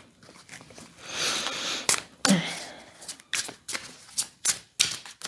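Playing cards riffle and shuffle in a woman's hands.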